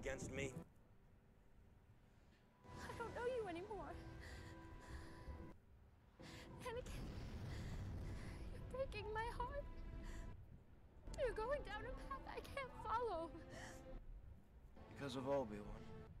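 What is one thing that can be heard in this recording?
A young woman speaks tensely.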